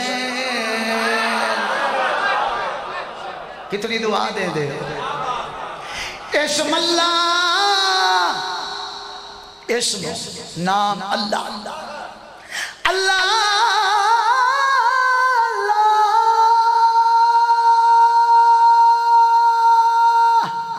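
A man chants a mournful lament loudly into a microphone, heard through a loudspeaker.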